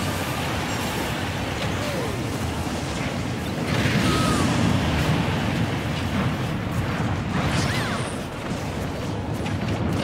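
Video game fighters clash with sharp punches and blasts.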